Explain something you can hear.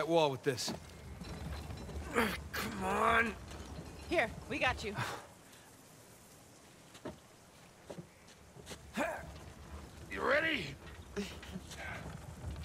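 A heavy wooden cart creaks and rumbles as it is pushed over stones.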